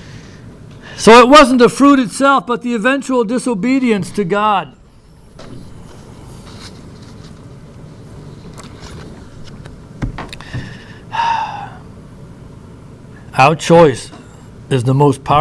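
A middle-aged man speaks into a microphone, reading out with a rising and falling voice and long pauses.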